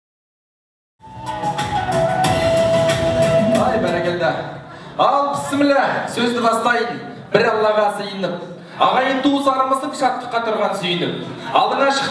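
A young man speaks with animation through a microphone and loudspeakers in a large echoing hall.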